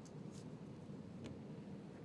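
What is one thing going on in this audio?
A plastic squeegee scrapes across wet window film.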